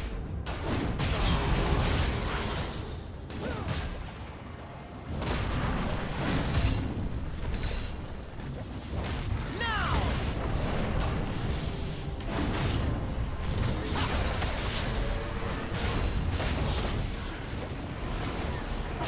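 Game spell effects whoosh and clash in a fight.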